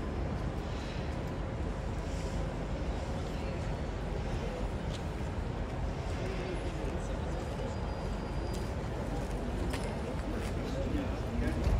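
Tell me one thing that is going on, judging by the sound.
Footsteps tap on stone paving nearby.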